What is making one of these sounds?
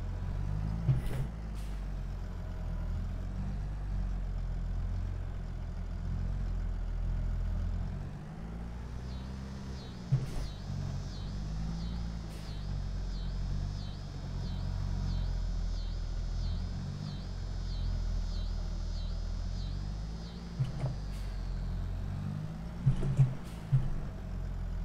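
Hay bales thud against a loader.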